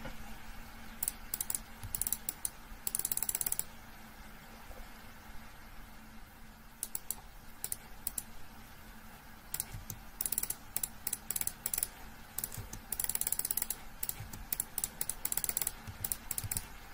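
Small game pops and clicks sound in quick bursts.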